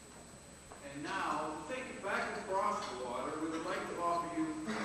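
A concert band plays music in a large echoing hall.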